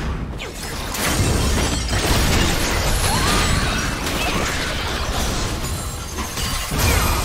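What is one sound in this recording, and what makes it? Game spell effects crackle and clash in a busy fight.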